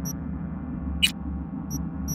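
A sharp electronic click sounds as a menu option is chosen.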